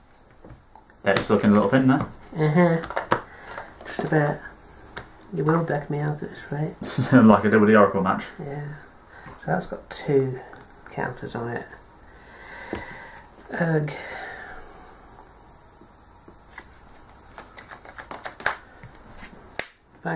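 Playing cards slide and tap softly on a table mat.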